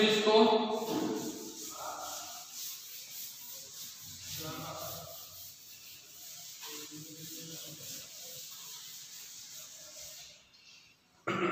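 A cloth duster rubs and swishes across a chalkboard.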